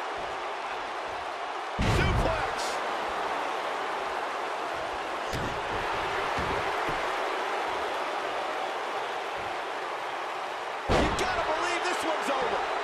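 A large crowd murmurs and cheers steadily in a big arena.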